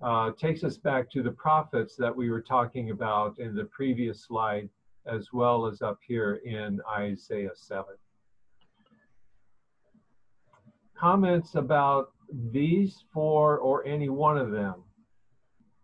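An elderly man reads out calmly through a microphone, heard as in an online call.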